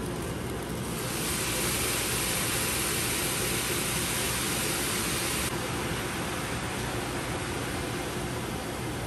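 Broth splashes as it is ladled into a pot of rice.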